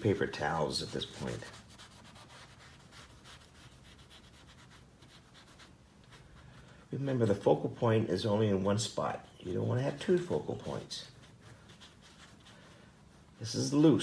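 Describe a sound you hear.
A tissue rubs softly across wet paint.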